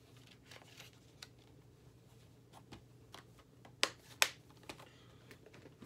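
Hands handle a small object, with sharp clicks and soft rustles.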